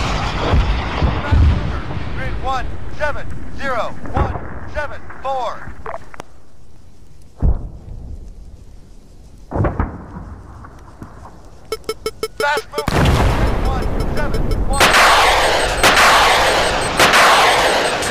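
A missile launches with a loud rushing roar.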